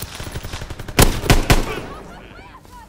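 A rifle fires loud shots that echo briefly.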